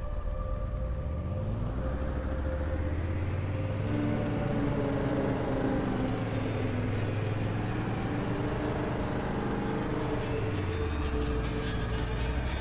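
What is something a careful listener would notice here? A vehicle engine revs up and drones steadily.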